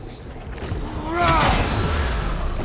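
A creature snarls as it charges.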